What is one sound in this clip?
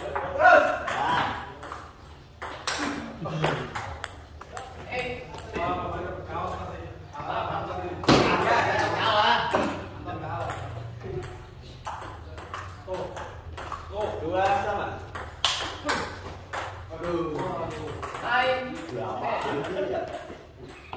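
A ping-pong ball clicks back and forth across a table.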